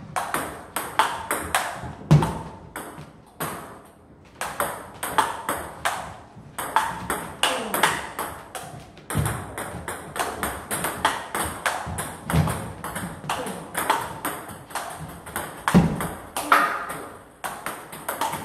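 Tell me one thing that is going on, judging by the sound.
A ping pong ball clicks rapidly back and forth between paddles and table.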